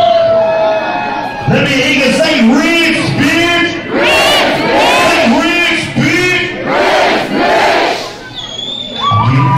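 A crowd cheers in a large hall.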